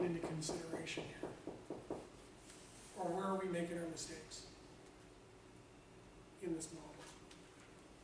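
A man lectures calmly, with pauses between phrases.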